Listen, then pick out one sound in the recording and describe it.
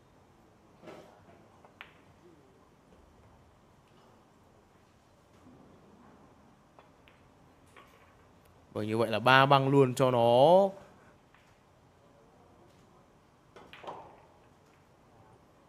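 Pool balls click against each other on the table.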